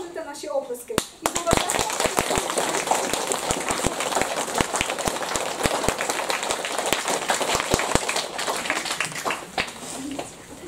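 People in a room applaud.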